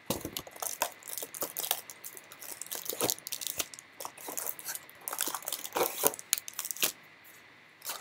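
Plastic wrapping crinkles and rustles as a box is handled.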